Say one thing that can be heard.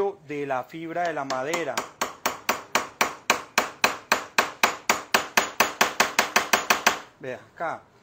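A hammer taps rapidly on a screwdriver handle.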